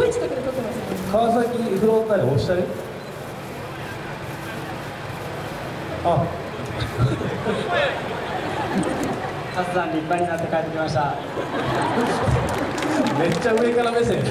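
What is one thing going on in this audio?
A man speaks through loudspeakers, echoing across a large open stadium.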